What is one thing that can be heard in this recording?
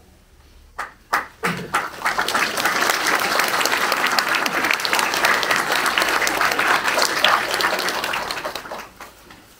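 An audience applauds in a room, the clapping building up and then dying away.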